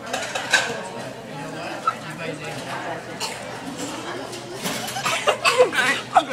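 A young woman crunches food while eating.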